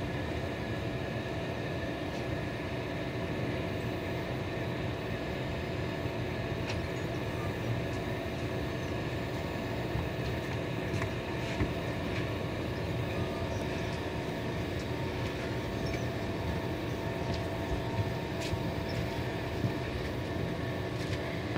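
A passenger train rumbles steadily past close by.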